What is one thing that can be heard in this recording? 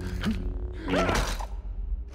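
Sparks crackle and fizz.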